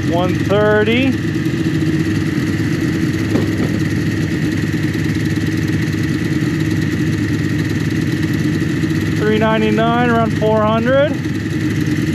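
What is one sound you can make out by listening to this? A snowmobile engine revs up briefly in short bursts.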